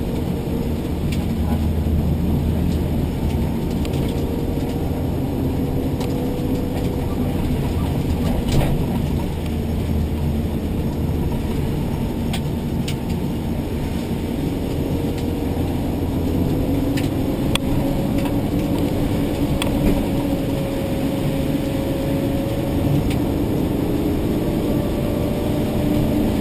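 A car engine roars loudly inside the cabin, its pitch rising and falling as the gears change.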